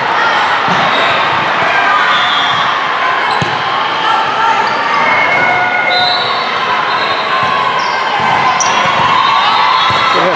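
A crowd of players and spectators chatters and calls out steadily.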